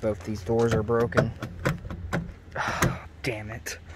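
A car door handle clicks as it is pulled.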